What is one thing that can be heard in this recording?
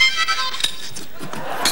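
A man plays a short harmonica phrase through a microphone.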